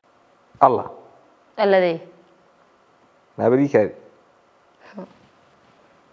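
A young man exclaims in short, surprised bursts close by.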